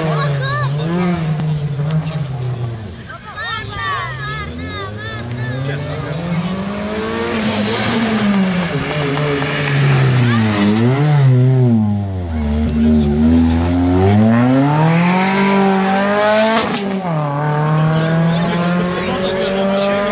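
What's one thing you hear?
A rally car engine revs hard and roars close by, rising and falling in pitch.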